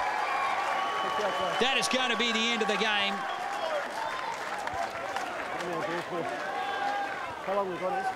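A crowd cheers in a stadium outdoors.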